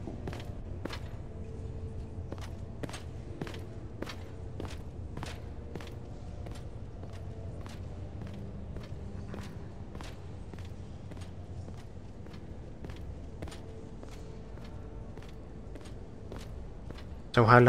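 Footsteps tap steadily across a hard stone floor.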